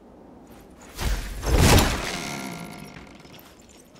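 A wooden door bursts open with a loud, crashing rumble.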